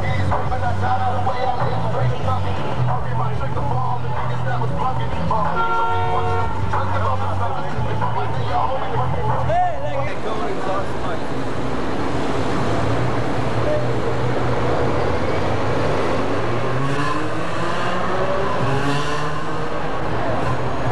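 Loud music with a heavy thumping bass plays from a car stereo.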